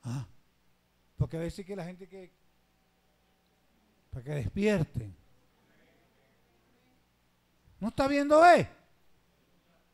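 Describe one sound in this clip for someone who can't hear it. A man preaches with animation through a microphone in short bursts.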